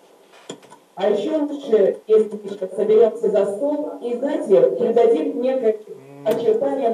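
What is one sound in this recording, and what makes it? A woman talks with animation close to the microphone of an online call.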